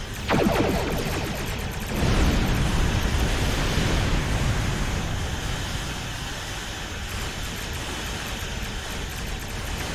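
Energy weapons zap and fire in rapid bursts.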